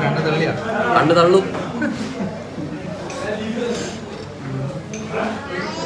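Voices murmur in the background of a busy room.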